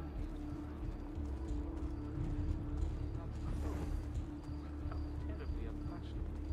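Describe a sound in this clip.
Footsteps tap on stone pavement as a crowd walks.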